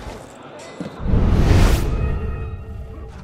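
A whooshing rush swells and fades after a leap.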